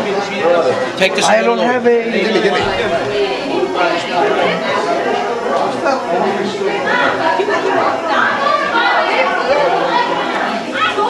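A crowd of people chatters loudly nearby in an echoing room.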